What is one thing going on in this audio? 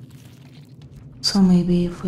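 A wet, fleshy object squelches as it is pulled free.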